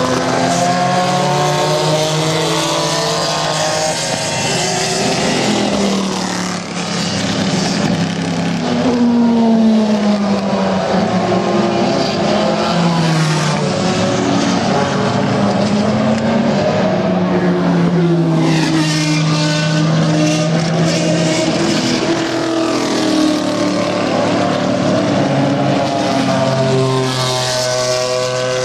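Race car engines roar and whine as the cars speed past.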